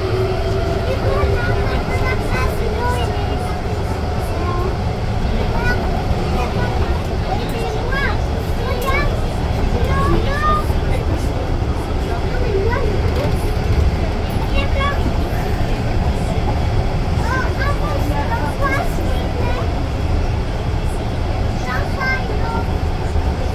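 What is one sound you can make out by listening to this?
A young man sings loudly nearby.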